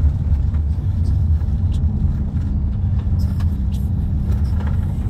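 A car's engine and road noise rumble low and steady from inside the car.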